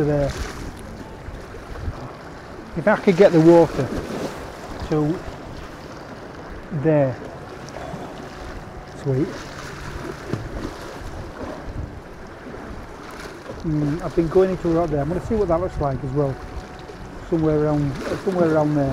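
A middle-aged man talks calmly close by, outdoors in wind.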